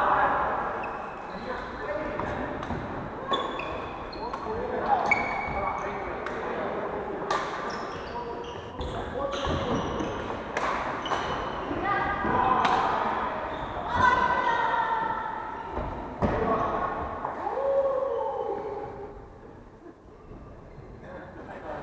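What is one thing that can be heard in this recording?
Shoes squeak sharply on a wooden floor.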